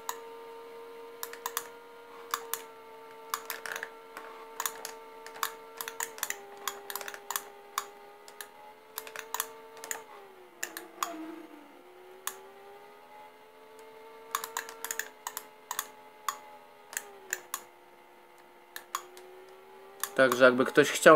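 A video game motorbike engine drones steadily through a loudspeaker, its pitch shifting now and then.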